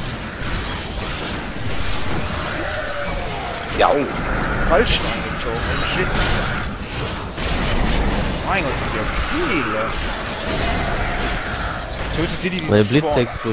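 Magic spells crackle and burst in a game fight.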